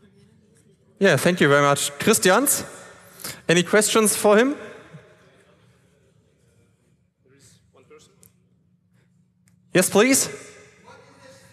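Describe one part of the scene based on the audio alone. A man speaks loudly into a microphone, echoing through a large hall.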